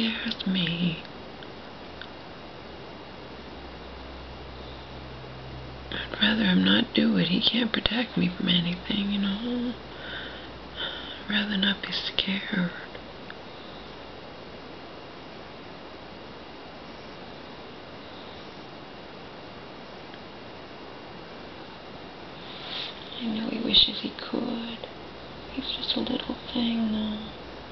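A woman speaks calmly and wearily, close by.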